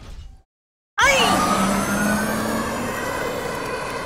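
A jet pack roars steadily.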